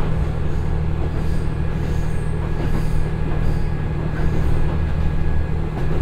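A diesel train engine hums low and steady.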